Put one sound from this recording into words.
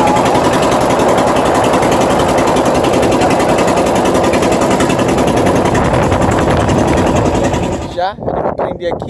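A boat motor drones loudly and steadily.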